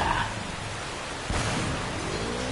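A gun fires.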